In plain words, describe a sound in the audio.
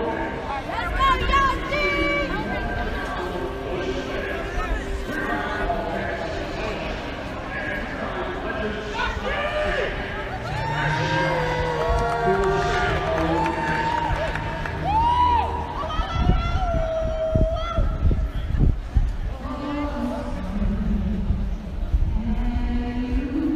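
A large crowd murmurs in the background.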